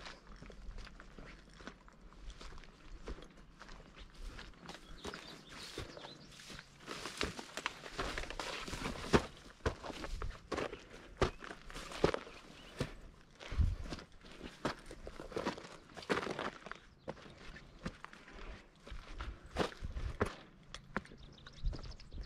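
Footsteps crunch through dry grass and over stones.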